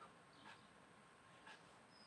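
A palette knife scrapes softly across a painted board.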